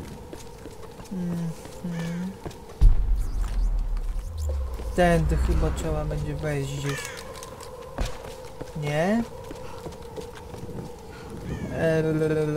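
Footsteps crunch quickly on stony ground.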